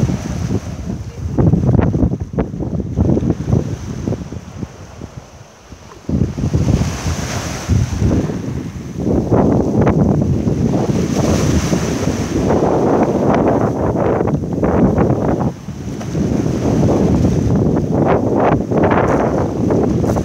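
Small waves break and wash over pebbles, rising and falling in bursts.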